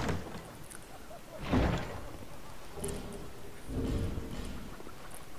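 A heavy wooden chest creaks open.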